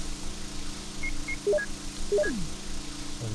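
Short electronic beeps chime in quick succession.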